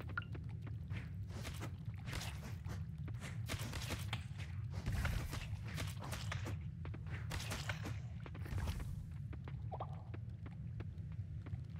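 A pickaxe chips at rocks again and again.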